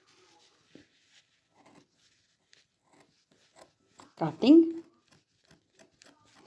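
Scissors snip through soft fabric.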